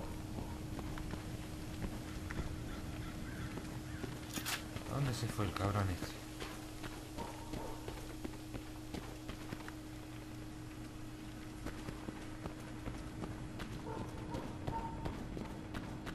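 Footsteps thud steadily on the ground.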